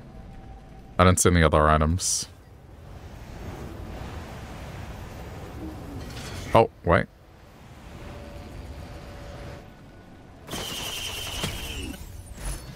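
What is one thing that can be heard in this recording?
Sharp magical bursts whoosh and zap as a game character uses powers.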